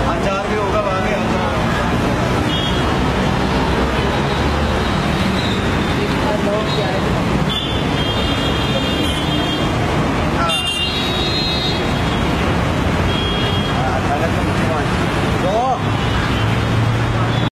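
Several people talk nearby outdoors.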